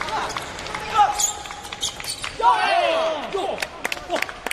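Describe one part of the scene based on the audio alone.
A young man shouts in celebration.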